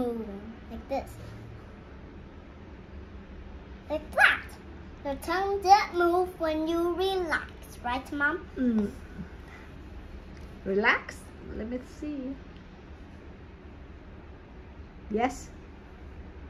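A young girl talks close by, in short bursts with pauses.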